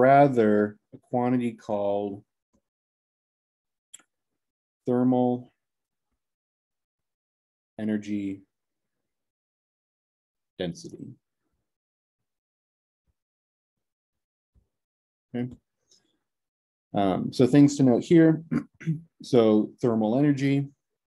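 A young man speaks calmly and slowly into a close microphone, with long pauses.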